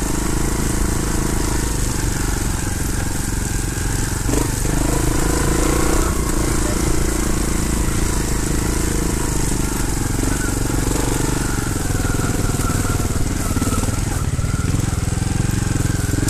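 A dirt bike engine revs loudly and steadily up close.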